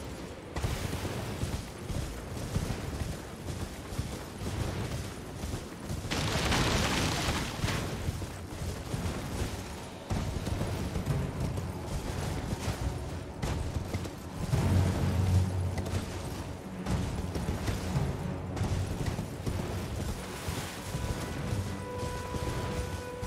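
Horse hooves gallop steadily over grass and rock.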